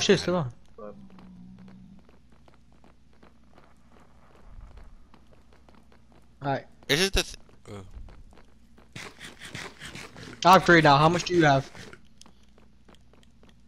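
Footsteps tap quickly on hard stone.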